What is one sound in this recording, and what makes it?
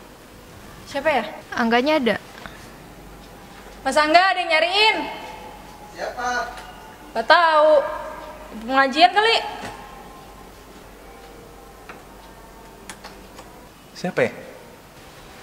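A young woman speaks calmly, close by.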